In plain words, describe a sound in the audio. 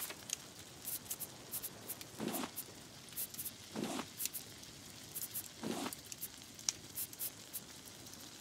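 Soft interface clicks tick now and then.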